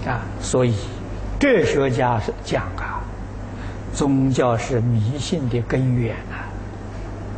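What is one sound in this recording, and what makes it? An elderly man speaks calmly and slowly, close to a microphone.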